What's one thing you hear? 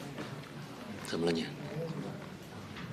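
A young man asks a question quietly.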